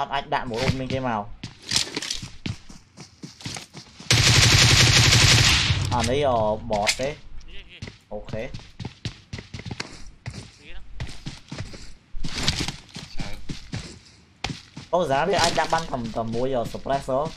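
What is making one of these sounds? Gunfire from a video game cracks in rapid bursts.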